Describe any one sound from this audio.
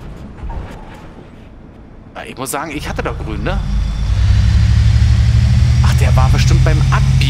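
A bus engine hums low and grows louder.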